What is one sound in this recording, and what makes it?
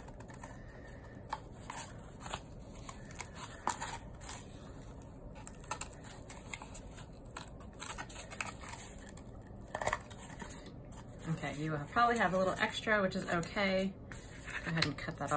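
Paper and cardboard rustle and scrape as they are handled.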